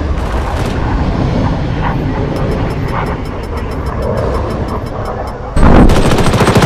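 A jet engine roars overhead.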